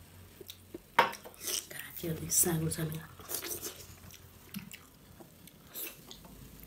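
A woman slurps food from her fingers up close.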